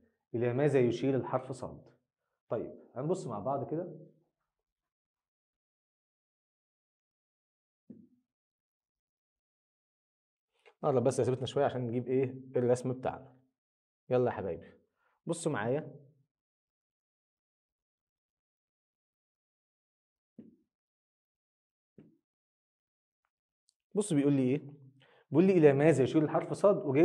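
A man speaks calmly and clearly into a close microphone, pausing often.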